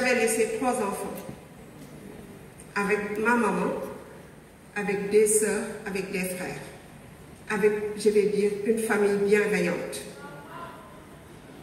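A woman speaks steadily through a loudspeaker in a large echoing hall.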